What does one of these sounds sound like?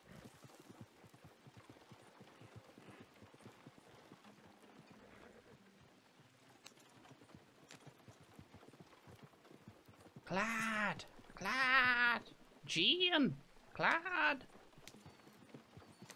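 Wagon wheels rattle and creak.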